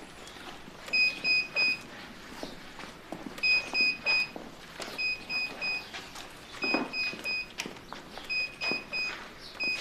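Footsteps scuff on a stone courtyard.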